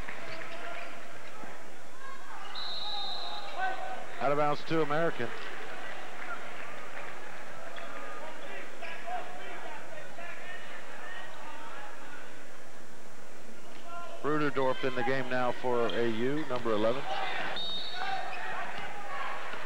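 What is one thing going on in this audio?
A large crowd murmurs in an echoing gym.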